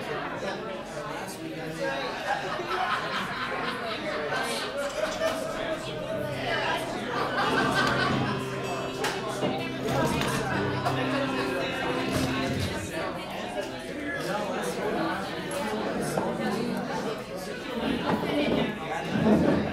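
An acoustic guitar is strummed through a loudspeaker in a room.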